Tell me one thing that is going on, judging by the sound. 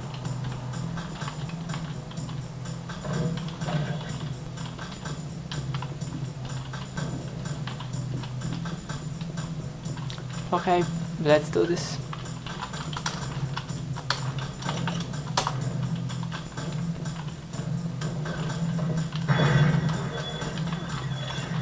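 Fingers tap keys on a keyboard.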